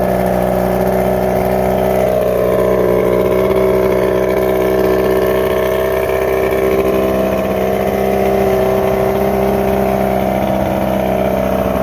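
Water sprays and splashes around an outboard motor's lower unit.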